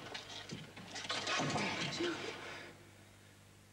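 A woman speaks in a low, urgent voice close by.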